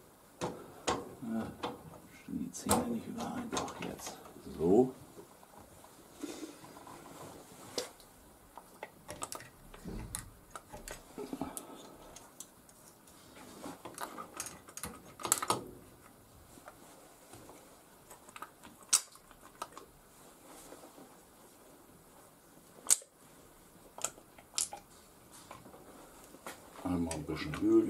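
Metal parts clink and tap together as hands handle them.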